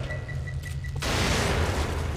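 A loud explosion roars and crackles.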